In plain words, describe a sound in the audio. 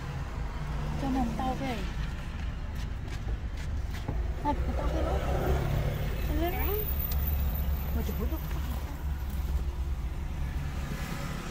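A young boy talks and laughs close by.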